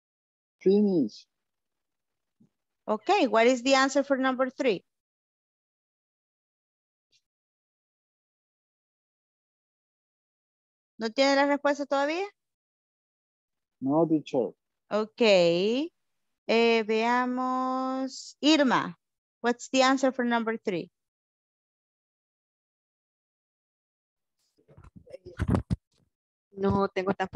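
A woman speaks through an online call in short bursts with pauses.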